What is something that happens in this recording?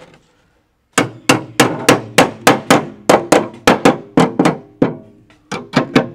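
A hammer strikes metal in quick repeated blows.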